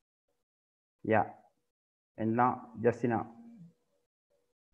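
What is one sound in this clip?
A man speaks briefly and calmly through an online call.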